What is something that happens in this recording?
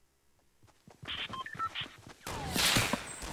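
Loud video game sound effects burst out and rumble.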